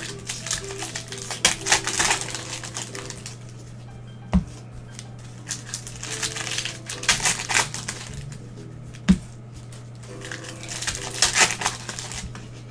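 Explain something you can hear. A foil card wrapper crinkles and rustles close by.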